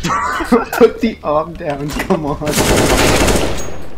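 A rifle fires a burst of sharp shots.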